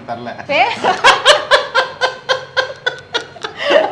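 A man laughs close by.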